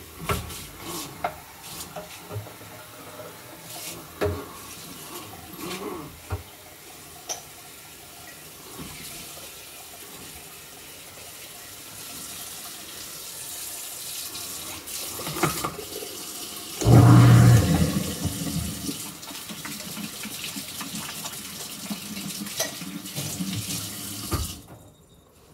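Dishes clink and clatter against each other.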